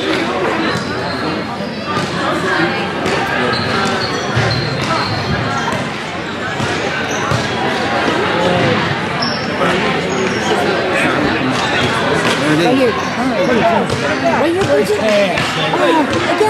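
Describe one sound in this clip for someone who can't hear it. Skates and wheels roll and scrape across a hard floor in a large echoing hall.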